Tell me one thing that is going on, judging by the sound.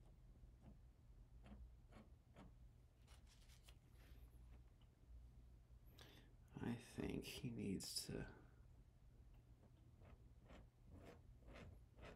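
A palette knife scrapes lightly on canvas.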